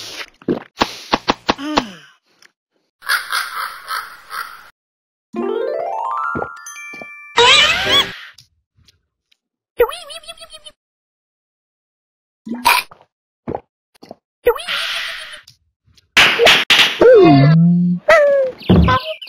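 Cartoonish game sound effects chime, pop and squeak on and off.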